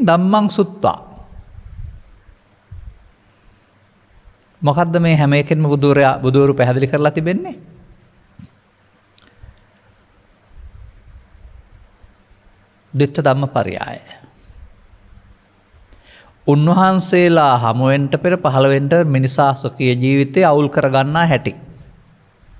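An elderly man speaks calmly into a close microphone, in bursts with pauses.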